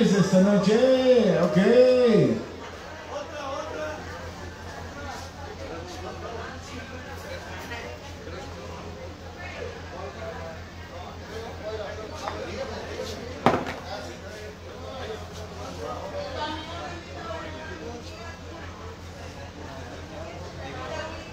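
A live band plays rock music.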